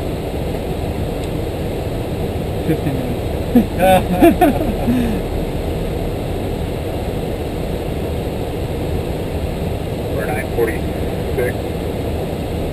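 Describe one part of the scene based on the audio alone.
A steady engine and air roar fills an aircraft cockpit.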